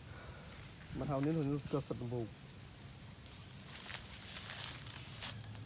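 Tall grass rustles as someone moves through it.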